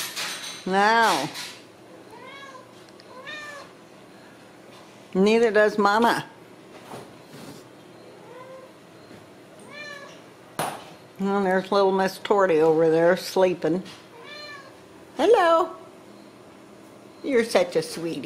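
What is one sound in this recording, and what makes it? Kittens meow loudly and repeatedly close by.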